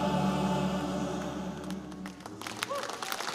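A group of singers holds a final chord together.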